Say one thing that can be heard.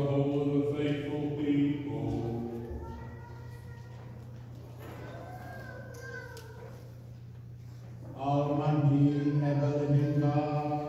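A small choir sings slow, sustained notes in a large echoing hall.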